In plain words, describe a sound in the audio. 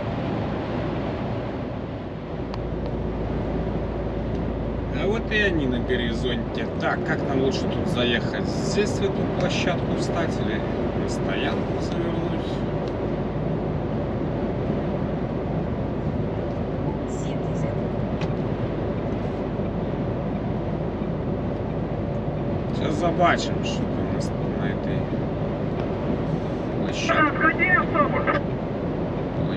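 A vehicle's engine hums steadily as it drives along a highway.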